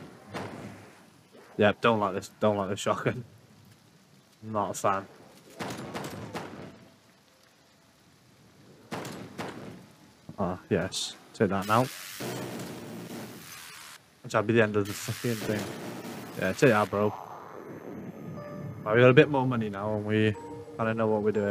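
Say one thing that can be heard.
Gunfire and explosions sound in a video game.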